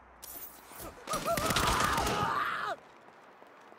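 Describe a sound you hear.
Gunshots fire in a rapid burst.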